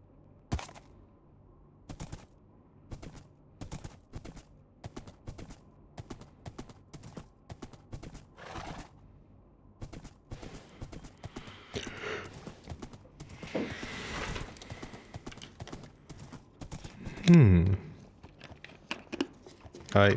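Horse hooves clop steadily on sand.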